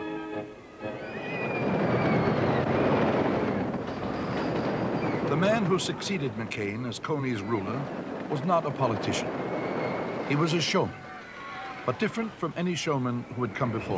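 A roller coaster car rumbles and clatters along wooden tracks.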